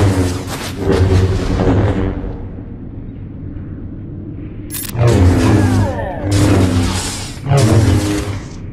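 Lightsabers hum and clash in a battle.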